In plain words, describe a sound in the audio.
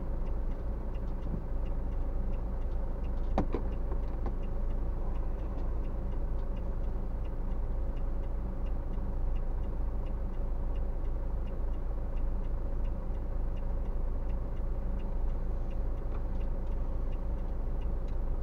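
Car engines idle in stopped traffic.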